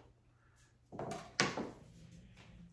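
A kitchen knife chops on a cutting board.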